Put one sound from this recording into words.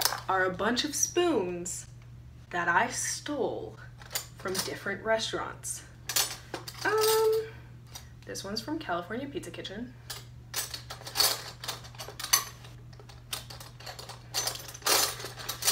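Metal spoons clink and rattle in a tin box.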